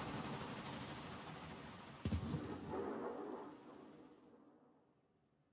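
Water rushes and splashes along a submarine's hull, then fades away.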